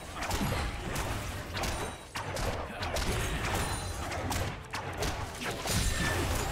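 Magic blasts and weapon clashes crackle in a hectic battle.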